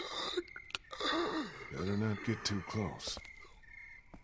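A man speaks quietly and warily.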